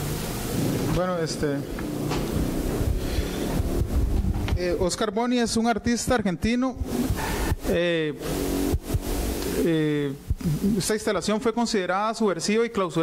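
A man talks through a microphone.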